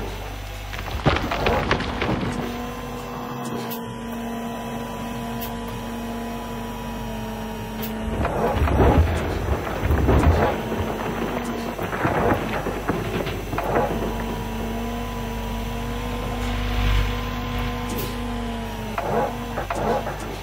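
Dirt and rocks scrape and tumble in a digging bucket.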